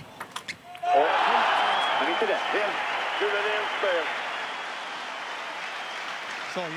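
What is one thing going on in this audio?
A crowd applauds and cheers in a large hall.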